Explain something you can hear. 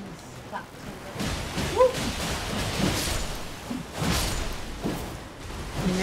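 Fire bursts with a loud whoosh.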